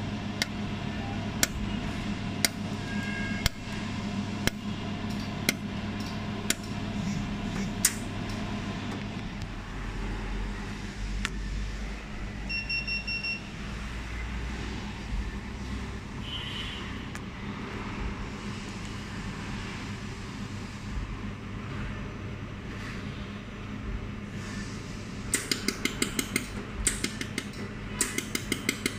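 A machine fan hums steadily.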